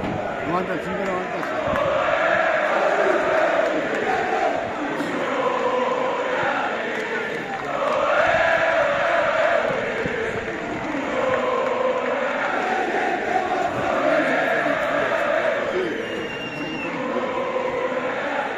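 A large stadium crowd sings loudly in rhythmic, rising and falling chants outdoors.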